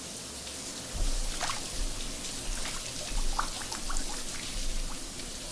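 Water splashes and sloshes as someone moves through it.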